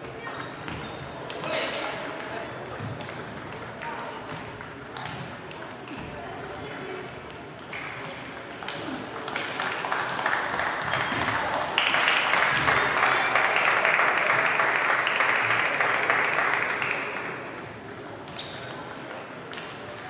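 Players' sneakers squeak sharply on the hall floor.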